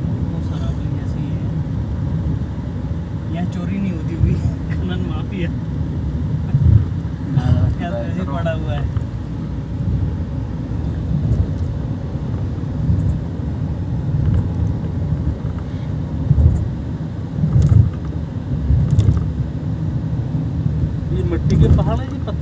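A car engine rumbles steadily from inside a moving vehicle.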